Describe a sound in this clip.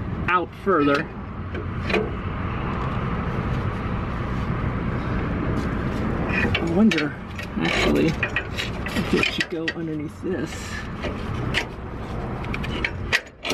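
Metal tools clink and clank against metal parts close by.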